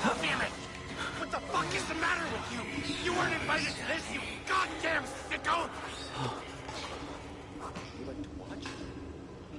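A man shouts angrily and rants close by.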